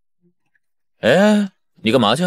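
A young man sighs briefly.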